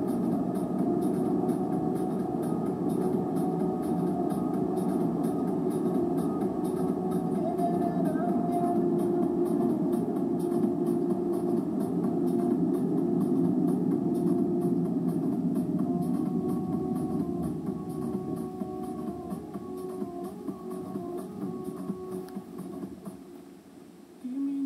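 A car drives, its engine and road noise heard from inside the cabin.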